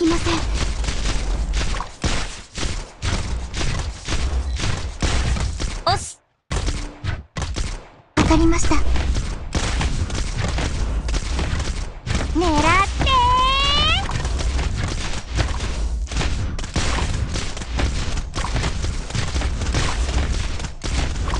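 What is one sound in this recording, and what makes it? Blades clash and weapons strike in quick, busy bursts.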